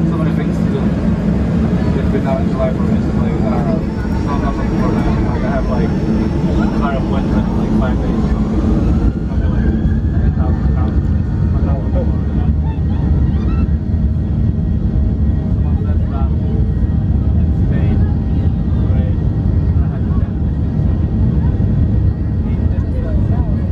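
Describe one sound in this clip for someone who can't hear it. Jet engines roar steadily from inside an aircraft cabin, their whine rising in pitch.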